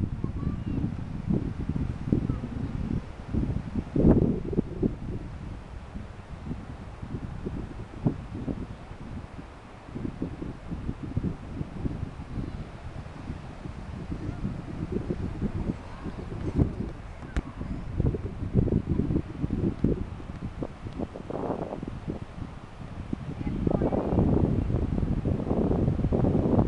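Wind blows across the microphone outdoors in gusts.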